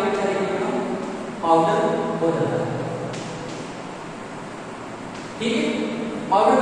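A man speaks calmly, explaining in a slightly echoing room.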